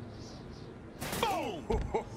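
A metal table clangs as it swings into a body.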